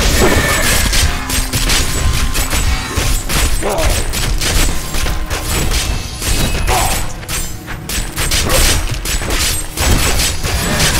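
Spells and weapon strikes crackle and crash in quick bursts.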